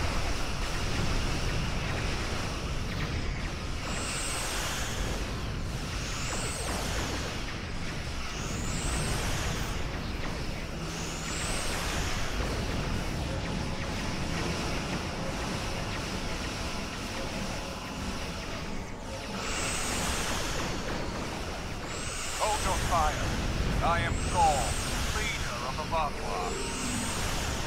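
Laser weapons fire in rapid bursts.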